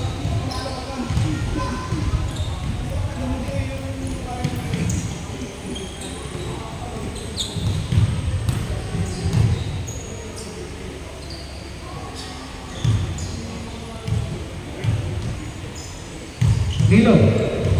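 Sneakers squeak on a gym floor in a large echoing hall.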